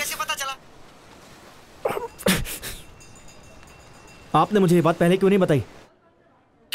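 A young man talks on a phone with animation.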